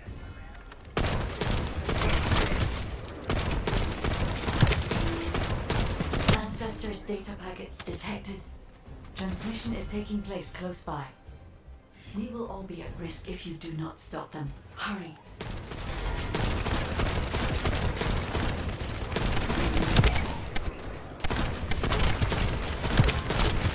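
Rapid gunfire crackles loudly in quick bursts.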